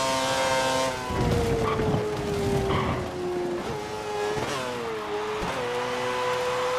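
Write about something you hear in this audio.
A racing car engine winds down as the car slows, then revs up again.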